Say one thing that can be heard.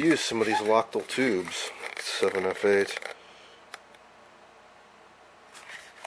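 A cardboard box rustles and scrapes as hands open it.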